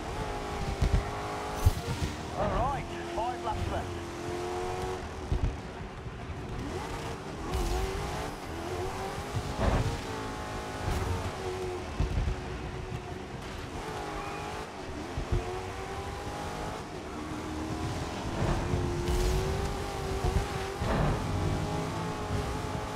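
A racing car engine revs up and down through gear changes.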